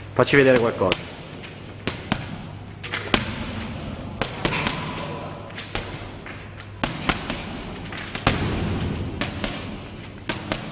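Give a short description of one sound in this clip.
Boxing gloves thump against a heavy punching bag.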